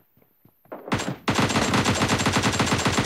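A rifle fires rapid bursts up close.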